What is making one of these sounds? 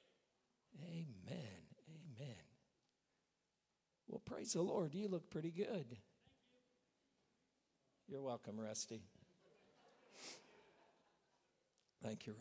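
A man speaks calmly through a microphone, with pauses between phrases.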